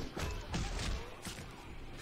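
A blunt weapon thuds against a body.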